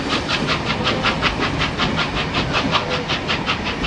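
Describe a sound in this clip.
Passenger carriages rumble and clank over rail joints behind the locomotives.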